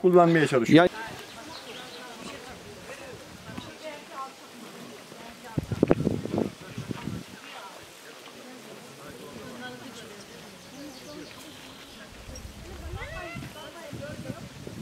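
A crowd of men and women chatter outdoors at a distance.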